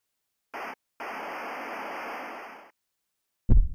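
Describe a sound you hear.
Harsh static hisses steadily, then cuts off.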